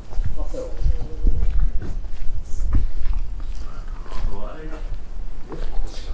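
Footsteps scuff on pavement nearby.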